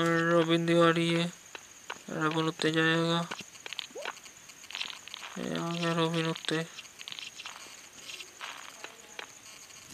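Small coins clink and jingle as they are picked up.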